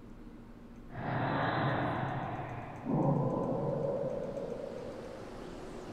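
A huge creature lets out a deep, rumbling roar.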